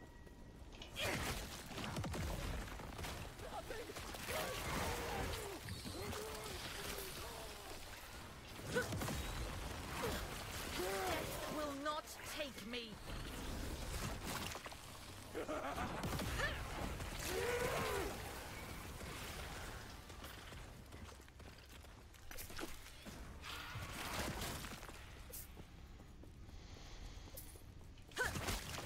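Game spells and hits crackle and boom.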